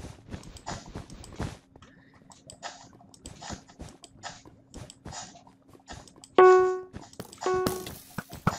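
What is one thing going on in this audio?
Game blocks crunch and thud in quick bursts as they are broken and placed.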